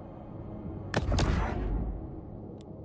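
A game menu makes a swooshing sound as it changes.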